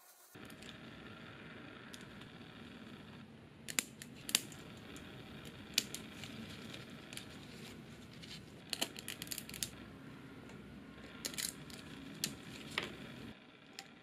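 Small pliers snip through hard plastic with sharp clicks.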